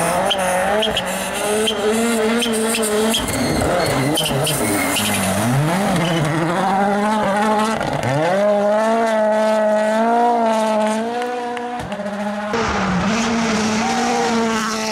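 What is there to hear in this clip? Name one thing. A rally car engine roars at high revs, rising and falling through gear changes.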